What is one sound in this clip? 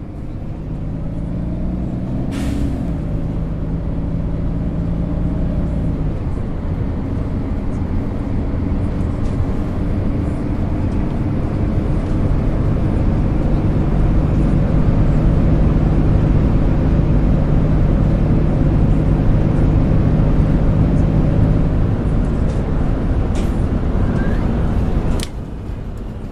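Tyres roll over a road.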